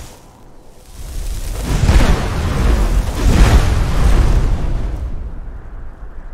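A magic spell bursts in a loud, roaring fiery explosion that slowly fades.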